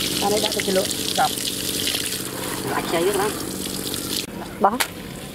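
Raw meat squelches wetly as hands move it around in a plastic basket.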